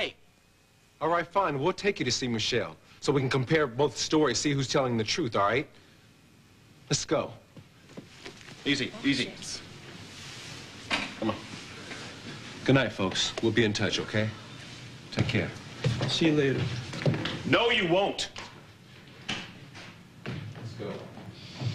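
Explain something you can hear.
A man speaks tensely and close by.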